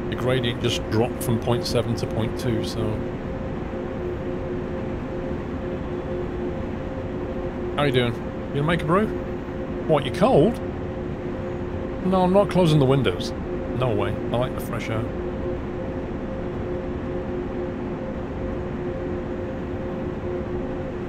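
An electric train hums steadily as it runs along the rails.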